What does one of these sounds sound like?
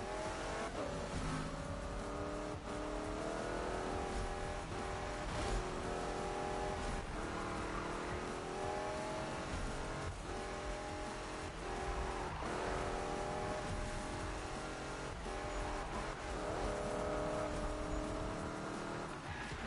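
A racing car engine revs high, climbing in pitch and dropping with each gear change.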